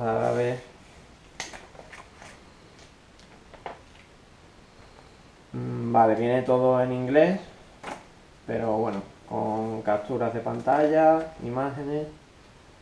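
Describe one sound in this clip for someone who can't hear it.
Paper rustles as a booklet is unfolded and its pages are turned.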